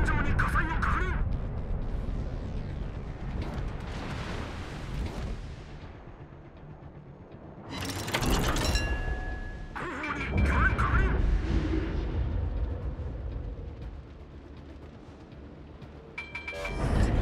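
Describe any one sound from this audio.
Big naval guns fire with deep booming blasts.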